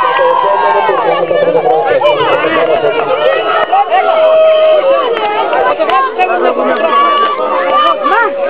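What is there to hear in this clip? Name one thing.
Children and adults chatter in a lively crowd outdoors.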